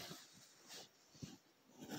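A pencil scratches on paper.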